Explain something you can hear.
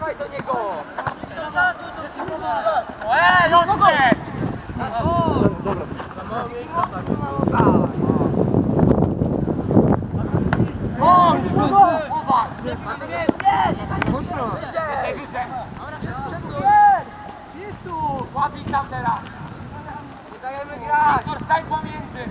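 Young boys shout to each other across an open field.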